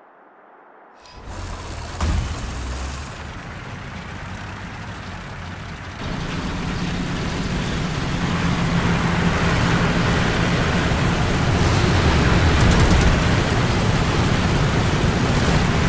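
Tank tracks clatter and squeak over the ground.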